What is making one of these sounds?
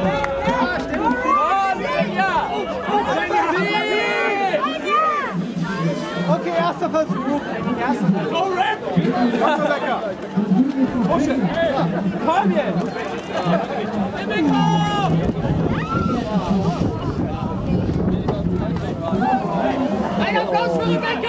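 A crowd of men and women shout and cheer loudly outdoors.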